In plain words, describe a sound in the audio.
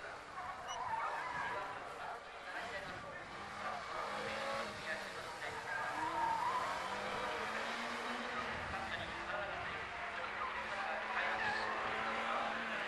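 A car engine revs hard and changes pitch as the car takes tight corners.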